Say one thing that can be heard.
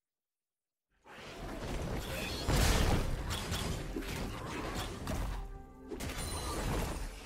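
Fantasy battle sounds clash and rumble loudly.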